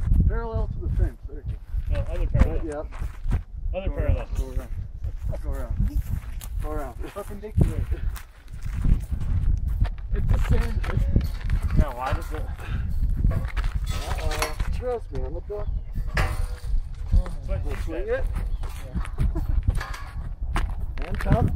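Young men talk to each other close by, outdoors.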